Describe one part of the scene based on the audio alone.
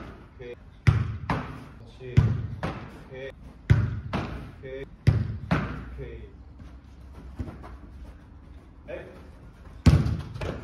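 A ball is thrown and caught with sharp thuds, echoing in a large hall.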